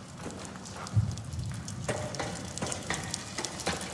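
Hands and boots clank on metal ladder rungs.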